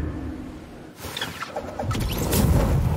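A glider snaps open with a flapping rush.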